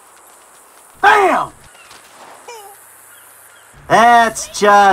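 A man screams in pain up close.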